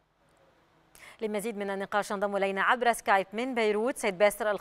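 A woman speaks calmly, as if reading out news.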